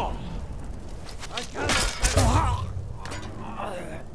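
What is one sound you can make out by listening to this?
An arrow thuds into a body.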